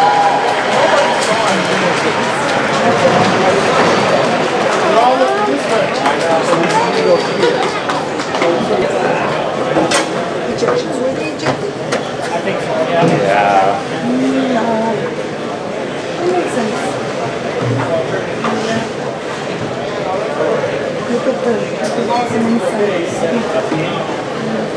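Teenage boys talk and call out to each other in an echoing ice rink.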